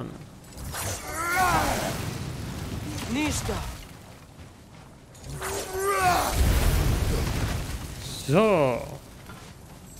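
A boy speaks with animation.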